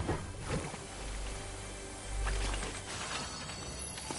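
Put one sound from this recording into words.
Water splashes as a figure swims.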